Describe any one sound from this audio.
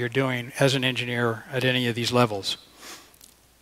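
An elderly man speaks with animation through a microphone.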